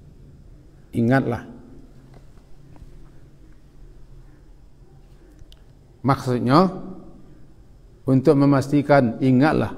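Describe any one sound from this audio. A middle-aged man speaks calmly into a microphone, in short phrases with long pauses.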